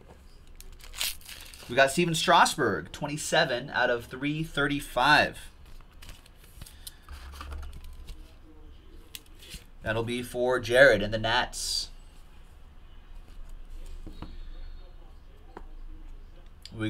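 Cardboard and plastic card sleeves rustle and click in a man's hands.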